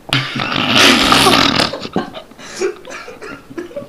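A young man coughs and splutters.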